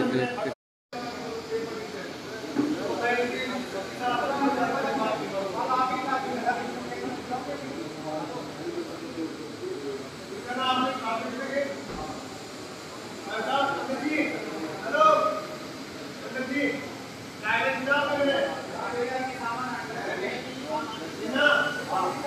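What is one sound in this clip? A man speaks to an audience over a loudspeaker in a large echoing hall.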